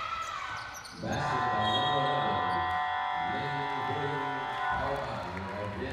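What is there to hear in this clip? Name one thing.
A loud, steady buzzer sounds in a large echoing hall.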